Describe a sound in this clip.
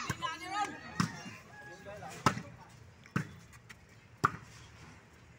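A ball is kicked with sharp thumps.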